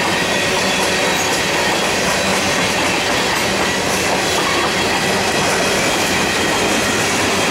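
Heavy freight cars rumble and clatter steadily along the rails close by.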